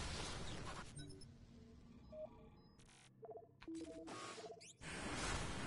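Short electronic beeps chime as menu items are selected.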